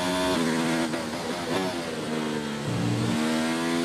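A racing car engine drops in pitch as the car slows for corners.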